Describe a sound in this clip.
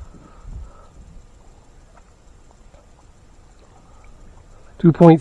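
Water laps softly against the side of a small boat.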